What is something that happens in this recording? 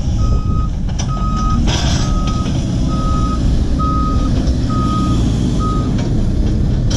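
A backhoe's reversing alarm beeps steadily.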